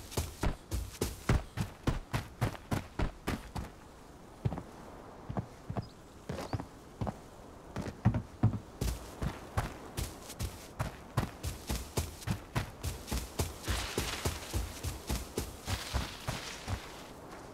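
Quick footsteps thud steadily on ground and wooden planks.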